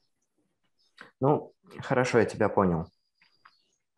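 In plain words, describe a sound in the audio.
A young man speaks briefly and casually into a microphone.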